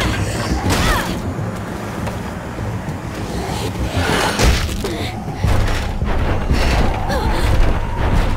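Zombies groan and snarl close by.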